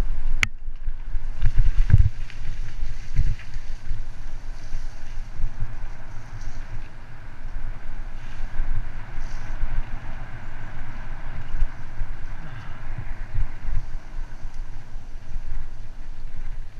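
Wind buffets a microphone outdoors with low, rumbling gusts.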